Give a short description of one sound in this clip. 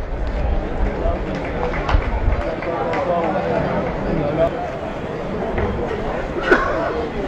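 A crowd of men chant and sing together outdoors.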